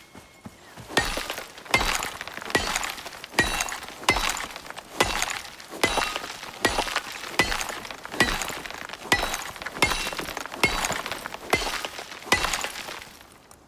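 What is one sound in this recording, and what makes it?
An axe strikes stone again and again in quick, heavy blows.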